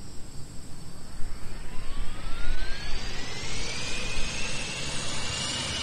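A jet engine roars and its whine rises in pitch as it speeds up.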